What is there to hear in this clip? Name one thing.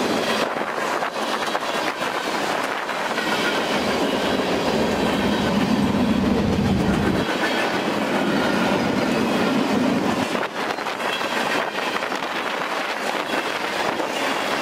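A long freight train rumbles past close by, its wheels clattering on the rails.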